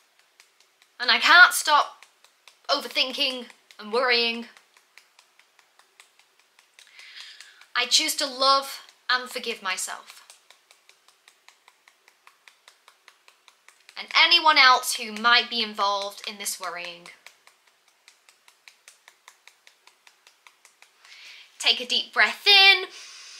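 A young woman speaks calmly in short phrases, close to the microphone.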